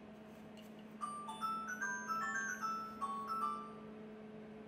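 A toy plays a short electronic chiming tune.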